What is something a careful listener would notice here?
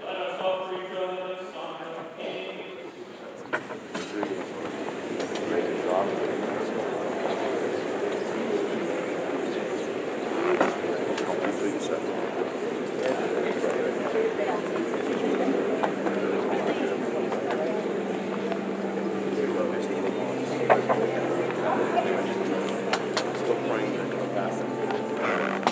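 A group of men pray aloud together in a large echoing hall.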